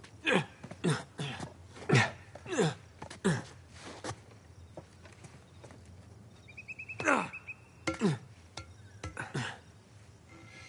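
Hands and feet thud heavily against stone and metal during a climb.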